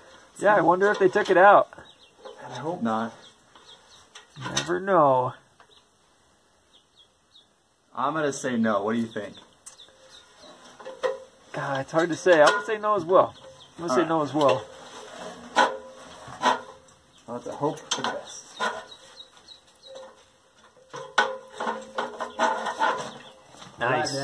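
Boots clank on the rungs of a metal ladder as someone climbs down.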